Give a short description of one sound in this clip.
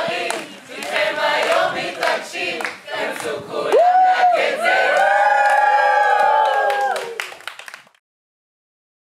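A group of men and women sing together loudly.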